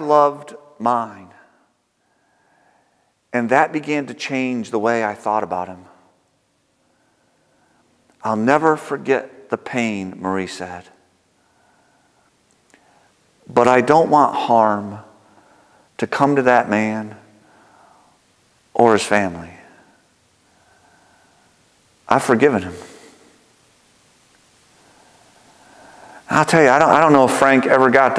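A middle-aged man speaks calmly and expressively through a microphone, with pauses, in an echoing room.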